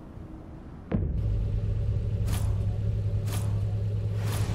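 A car engine starts with a roar and idles with a deep, steady rumble.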